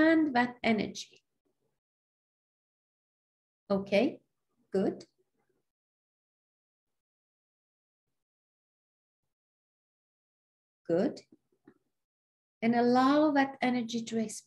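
A middle-aged woman speaks calmly in short bursts, heard close through a microphone, with long pauses.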